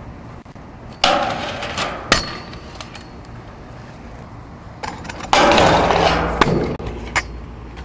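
Scooter wheels grind and scrape along a metal sculpture.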